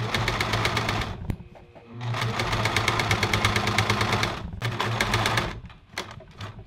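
A sewing machine stitches rapidly in short bursts.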